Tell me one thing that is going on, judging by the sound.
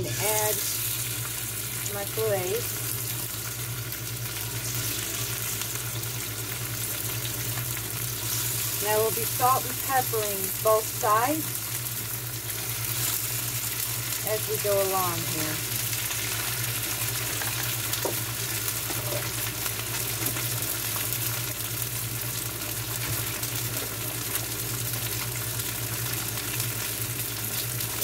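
Fish sizzles steadily as it fries in a hot pan.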